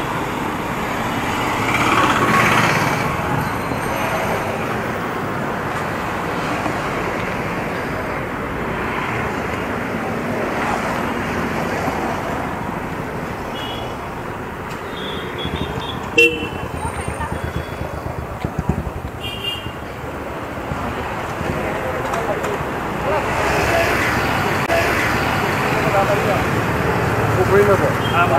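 A motorcycle engine hums steadily while riding along a road.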